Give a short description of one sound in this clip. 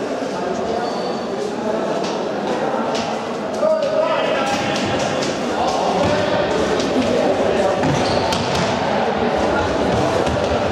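A ball is kicked and bounces on a hard floor in a large echoing hall.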